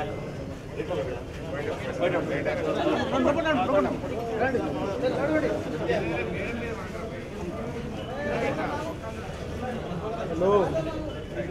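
A crowd of men chatters all around, close by.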